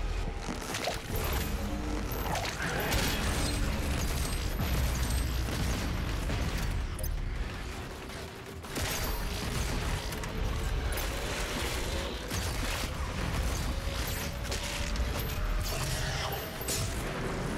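Monsters roar and growl.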